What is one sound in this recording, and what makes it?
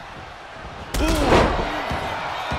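A heavy body slams down onto a wrestling ring with a loud thud.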